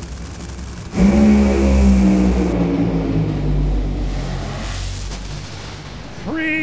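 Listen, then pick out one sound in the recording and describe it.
Drag racing cars roar loudly down the track.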